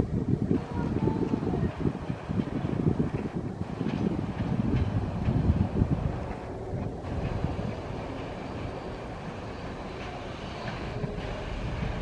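A tram rolls slowly along the tracks toward the listener.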